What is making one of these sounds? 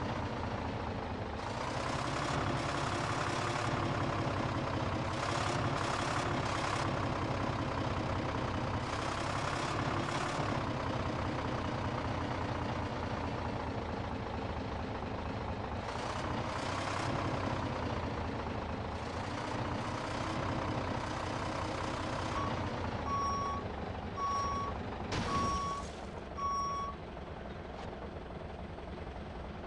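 A truck engine rumbles steadily and revs up and down.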